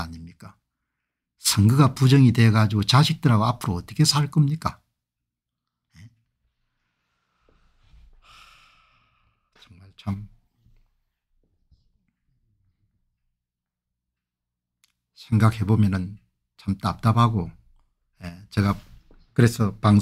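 An elderly man speaks calmly into a microphone, heard as if over an online call.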